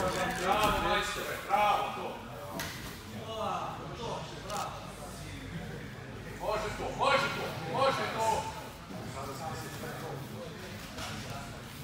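Bodies shuffle and thump on a padded mat.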